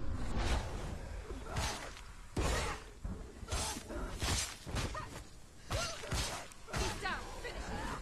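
A woman grunts with effort.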